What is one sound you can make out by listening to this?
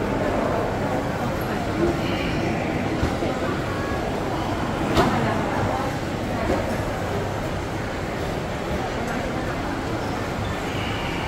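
A crowd of people chatter steadily nearby.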